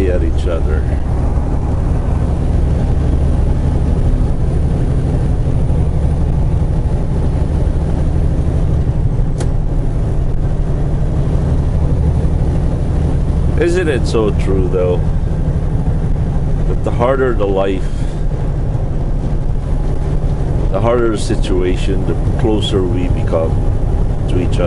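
Tyres hum on the highway.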